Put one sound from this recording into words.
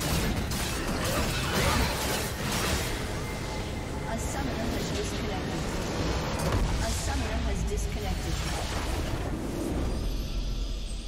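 Spell blasts and explosions crash in a game battle.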